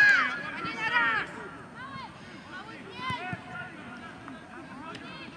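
Children shout excitedly to each other outdoors.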